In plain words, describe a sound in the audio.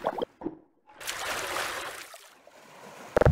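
Water splashes as a plastic barrel is pushed through it.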